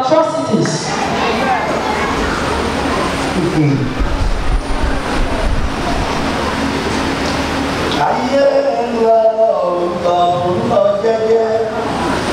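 A saxophone plays.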